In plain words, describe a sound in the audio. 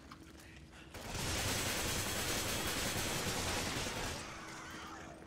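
Wet flesh squelches and tears.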